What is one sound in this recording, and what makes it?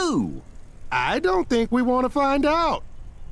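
A man with a goofy cartoon voice answers nervously.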